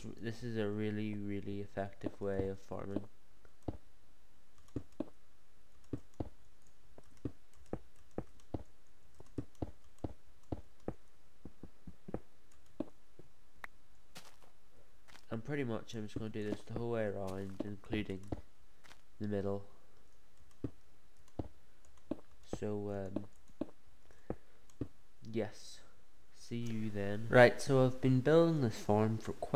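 Wooden blocks are placed one after another with short, quick knocks.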